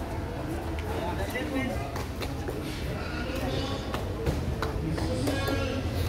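A volleyball is struck by hand with a sharp slap.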